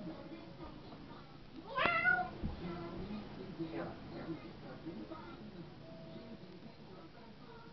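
A young girl talks and squeals playfully close by.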